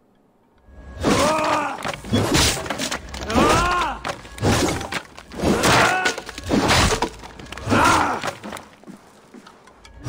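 Wooden crates smash and splinter loudly.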